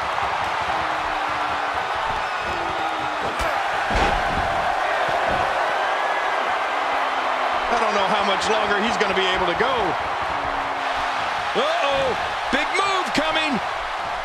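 A large crowd cheers and roars in a large arena.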